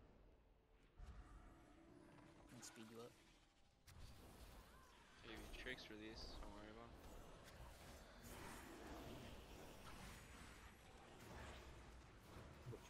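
Magic spells whoosh and crackle in a noisy fight.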